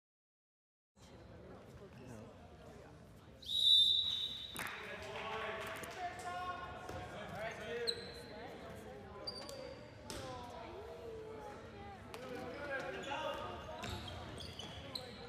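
Young men shout and call to each other in a large echoing hall.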